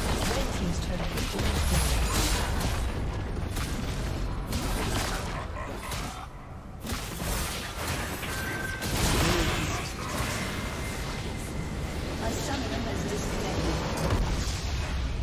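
Spell effects crackle and clash in a busy fight.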